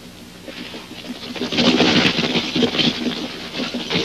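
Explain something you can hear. Horses' hooves clatter over rocks.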